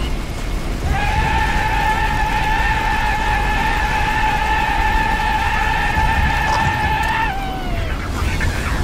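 A rapid-fire gun shoots in a steady, whining stream, then winds down.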